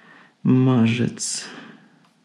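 An unplugged electric guitar string is plucked and rings briefly.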